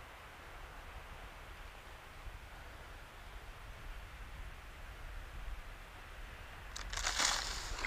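Wind rushes softly past a gliding model plane.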